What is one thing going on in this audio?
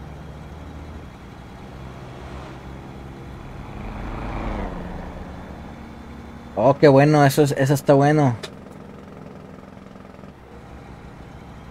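A truck's engine hums steadily as it drives along a road.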